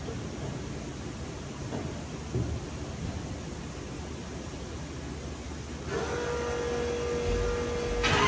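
A big engine idles with a loud, rough rumble.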